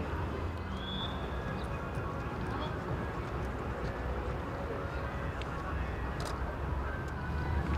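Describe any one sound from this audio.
A man talks outdoors.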